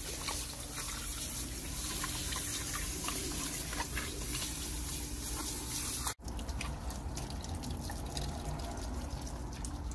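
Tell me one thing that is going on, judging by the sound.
A dog snaps and laps at the spraying water.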